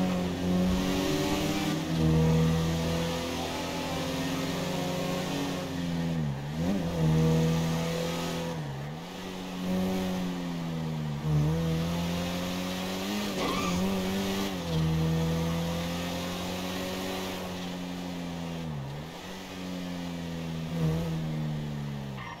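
Tyres hum steadily on the road.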